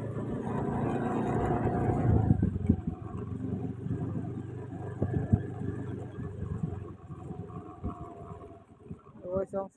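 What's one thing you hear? An elephant's feet thud softly on a paved road.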